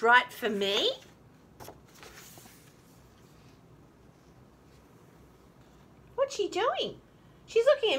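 A woman reads aloud expressively, close by.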